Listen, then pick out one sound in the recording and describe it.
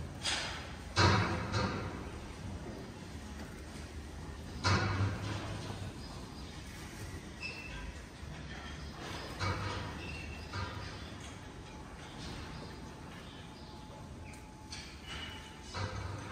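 Cows moo nearby in a large, open barn.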